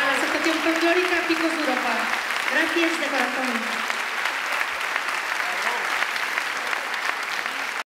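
A folk band plays lively music through loudspeakers outdoors.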